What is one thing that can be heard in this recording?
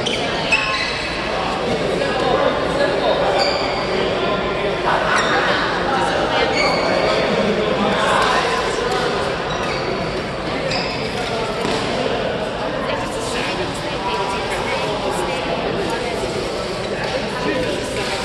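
Shuttlecocks are struck with rackets in quick taps.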